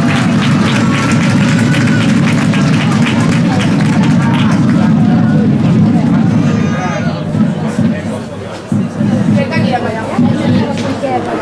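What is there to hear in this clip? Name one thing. A crowd of children and adults chatters nearby outdoors.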